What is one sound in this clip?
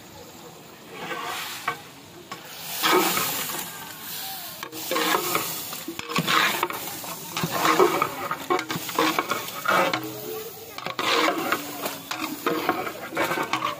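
A metal spatula scrapes and stirs thick food in a large metal pot.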